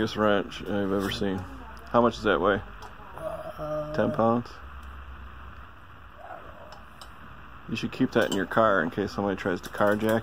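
Metal wrenches clink against each other and their hooks.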